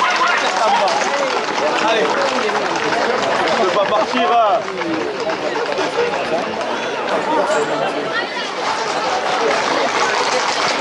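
Horse hooves clatter on pavement.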